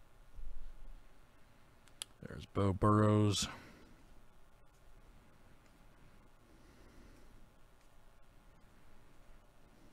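Trading cards rustle and slide as they are flipped through.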